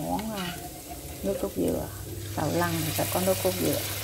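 Liquid pours into a hot pan and sizzles.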